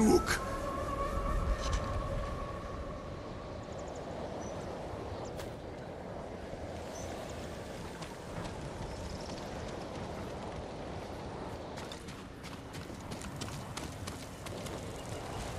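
Strong wind blows steadily outdoors.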